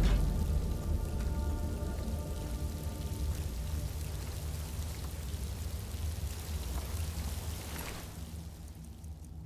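A waterfall roars steadily nearby.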